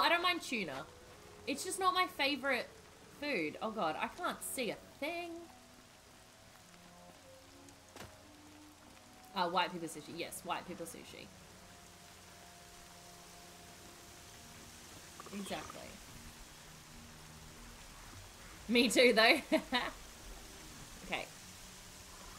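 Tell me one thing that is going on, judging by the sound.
A young woman talks casually and with animation into a close microphone, in bursts with pauses.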